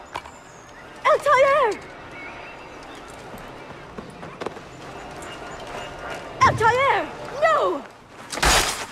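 A woman cries out in alarm.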